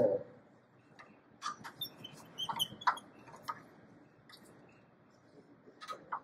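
A metal key clicks and rattles in a lathe chuck.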